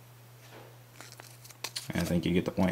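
Small plastic toy pieces click softly as they are handled.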